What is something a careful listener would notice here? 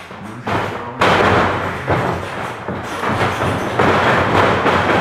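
A body slams onto a wrestling ring mat with a loud thud.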